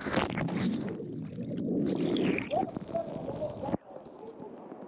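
Bubbles rush and gurgle underwater.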